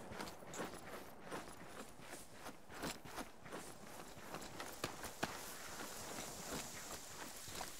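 Footsteps rustle through tall grass at a steady walking pace.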